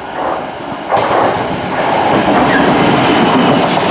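A diesel locomotive roars past close by.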